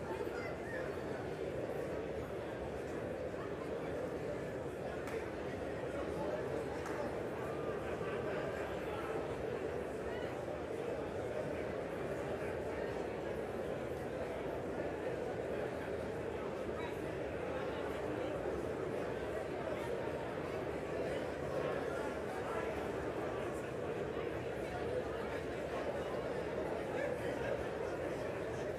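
A large crowd of men and women chatters at once in a big echoing hall.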